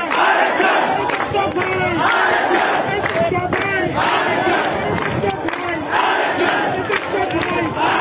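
Men clap their hands in rhythm.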